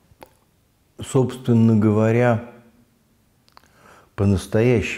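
An elderly man speaks calmly and close to a microphone, with pauses.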